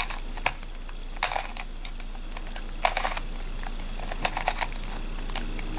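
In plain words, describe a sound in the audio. Plastic puzzle pieces click and rattle as a twisty puzzle is turned quickly.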